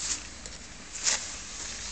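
A cloth wipes softly over a metal surface.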